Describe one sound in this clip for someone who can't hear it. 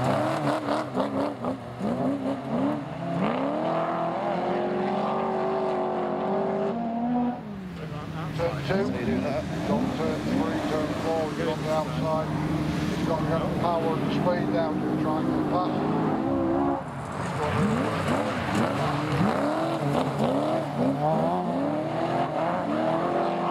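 Tyres skid and crunch on loose dirt.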